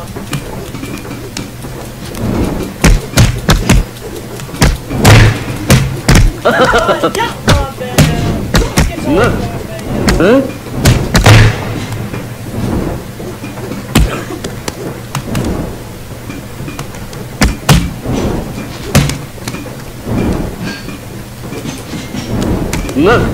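Dull thuds and knocks sound as game figures scuffle and fall.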